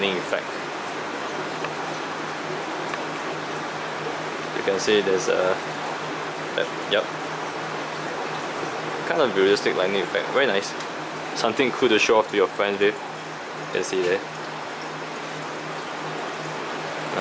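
Water bubbles and gurgles steadily in an aquarium.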